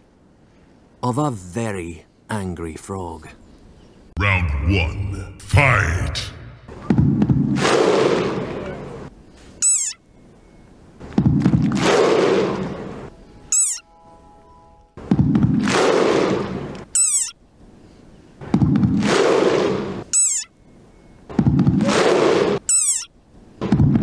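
A small frog lets out shrill, angry squeaks again and again.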